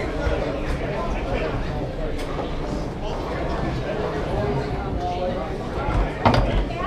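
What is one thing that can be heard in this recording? Table football rods clack and rattle as players jerk them.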